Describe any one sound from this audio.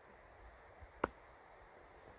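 A knife blade thuds into a block of wood.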